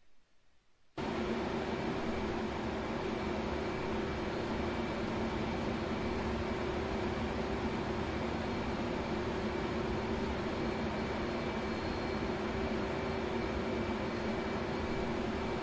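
A jet engine drones steadily from inside a cockpit.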